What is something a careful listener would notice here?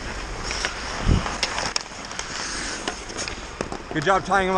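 Hockey sticks and a puck clack sharply near the net.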